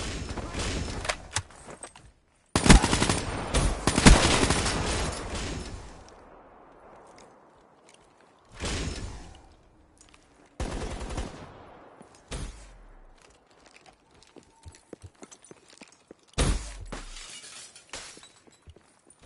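Game gunfire and explosions go off in loud bursts.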